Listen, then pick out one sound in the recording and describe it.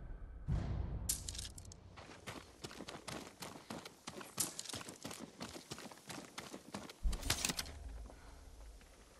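Footsteps patter quickly over stone.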